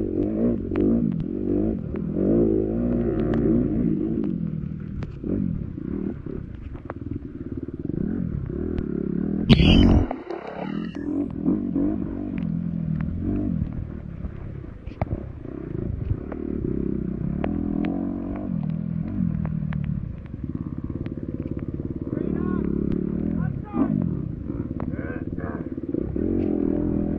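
A dirt bike engine revs hard and drops back as the bike rides along a muddy trail.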